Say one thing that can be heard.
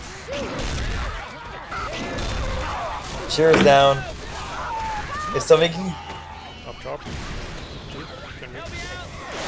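Zombies snarl and shriek close by.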